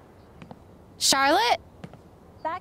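A young woman calls out a name from across a room.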